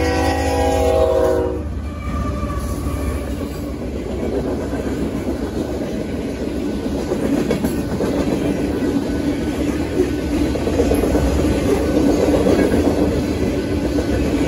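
A freight train rumbles and clatters past on the tracks.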